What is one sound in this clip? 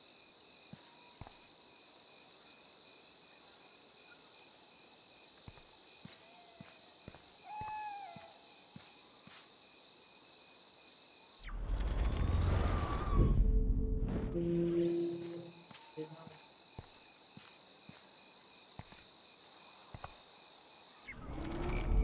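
Footsteps tap softly on pavement.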